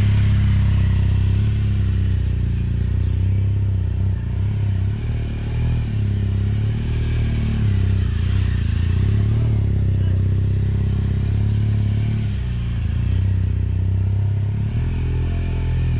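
A motorcycle engine runs at low speed, rising and falling as it circles.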